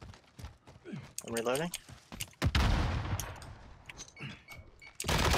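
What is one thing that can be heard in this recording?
A gun clicks and rattles as it is handled and reloaded.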